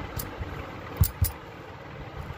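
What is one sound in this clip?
A metal sieve knocks softly.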